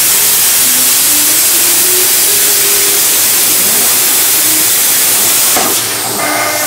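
A plasma torch cuts metal with a loud, steady roaring hiss.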